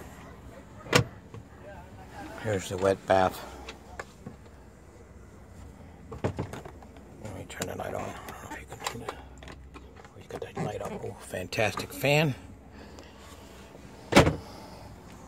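A wooden cupboard door knocks and clicks as it opens and closes.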